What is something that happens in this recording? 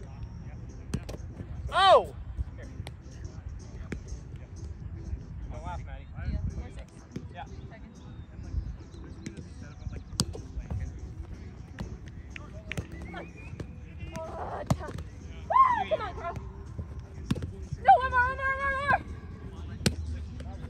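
A ball smacks against hands and a bouncy net with sharp taps.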